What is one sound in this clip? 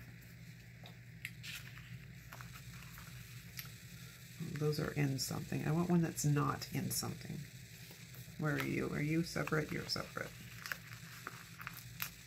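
Paper rustles and crinkles softly close by.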